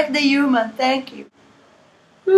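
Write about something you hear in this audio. A young woman speaks close by in a lively, sing-song voice.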